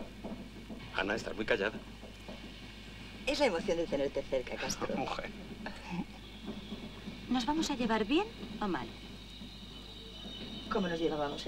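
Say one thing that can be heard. A woman talks calmly close by.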